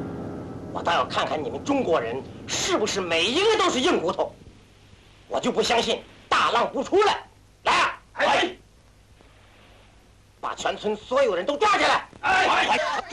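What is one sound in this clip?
A man shouts angrily and close by.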